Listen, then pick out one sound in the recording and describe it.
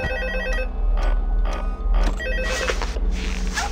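A music box plays a tinkling tune.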